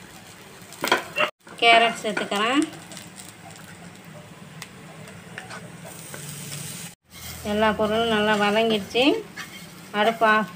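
A wooden spatula stirs and scrapes food in a frying pan.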